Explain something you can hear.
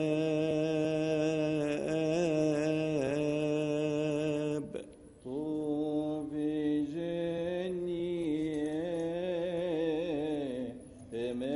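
A choir of men chants together in a slow, steady drone, echoing in a large hall.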